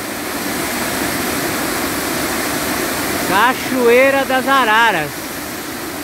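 A waterfall splashes and rushes steadily nearby.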